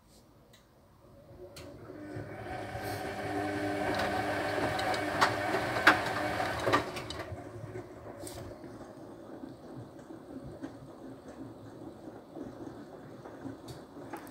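A washing machine drum turns, sloshing water and laundry.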